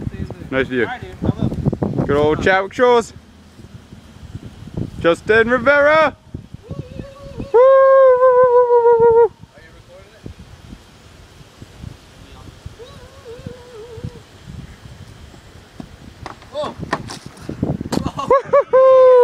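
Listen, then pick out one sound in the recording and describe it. Young men shout and whoop nearby outdoors.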